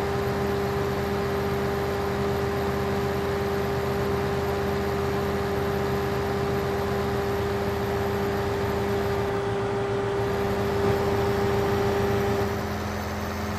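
A harvester engine roars and whines while chopping crop.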